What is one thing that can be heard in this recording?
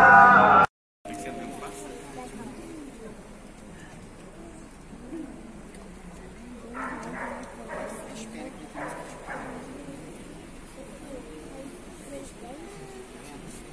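A crowd of men and women murmurs and chatters quietly nearby.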